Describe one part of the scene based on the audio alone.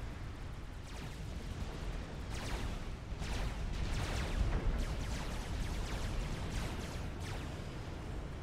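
Weapons fire in quick bursts.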